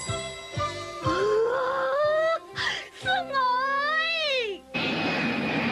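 A boy exclaims loudly and gleefully, his voice rising and falling.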